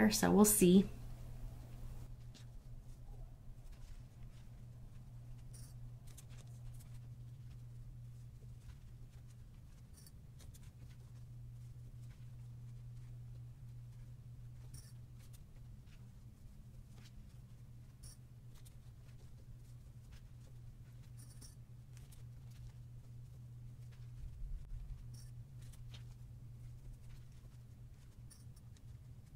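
Paper rustles and crinkles softly as hands fold and tuck it.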